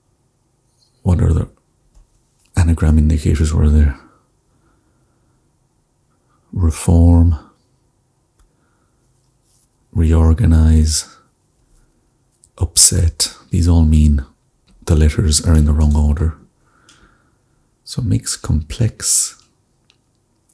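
A young man speaks calmly and thoughtfully into a close microphone, with pauses.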